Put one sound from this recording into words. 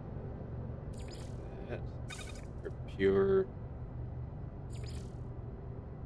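Menu clicks and chimes sound from a game.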